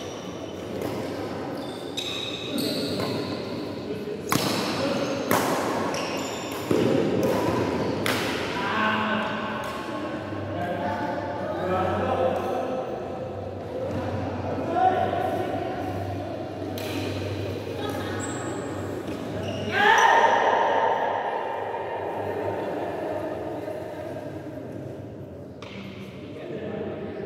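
Shuttlecocks are struck sharply with rackets in a large echoing hall.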